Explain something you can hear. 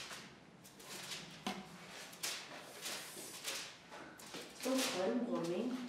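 Paper rustles as pages are handled.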